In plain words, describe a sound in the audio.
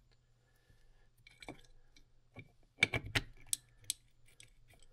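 Metal engine parts click and clink as they are fitted together.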